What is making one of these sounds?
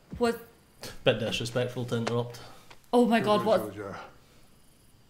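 A man speaks calmly to a listener close by.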